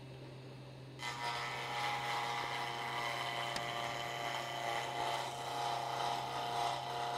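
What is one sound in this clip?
A chisel scrapes against spinning wood on a lathe.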